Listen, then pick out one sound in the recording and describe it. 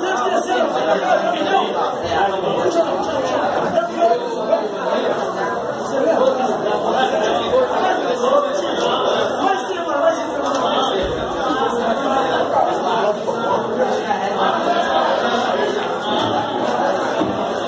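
Several men chat loudly nearby.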